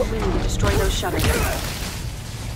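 Metal crashes and shatters loudly.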